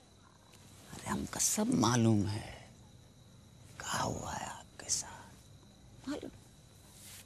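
A young man speaks with emotion, close by.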